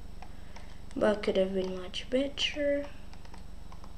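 A young boy speaks briefly and calmly into a microphone.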